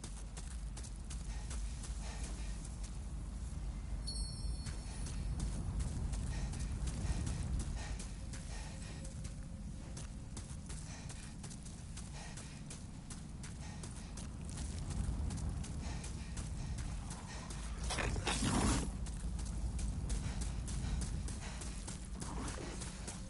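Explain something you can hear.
Armoured footsteps crunch steadily on gravel.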